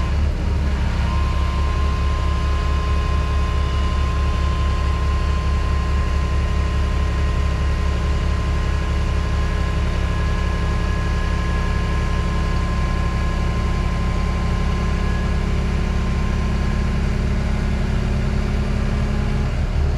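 Hydraulics whine steadily as a heavy load is lifted.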